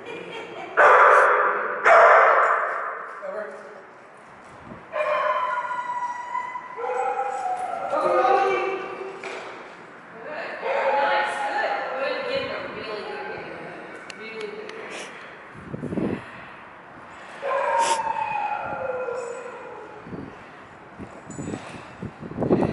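A man talks encouragingly to a dog in a large echoing hall.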